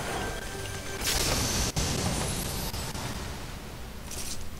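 A treasure chest opens with a rising, shimmering chime.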